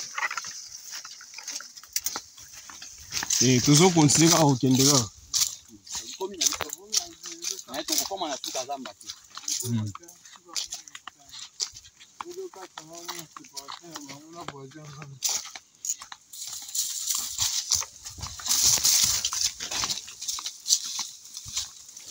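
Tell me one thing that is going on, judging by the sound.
Footsteps crunch on dry leaves and grass along a path.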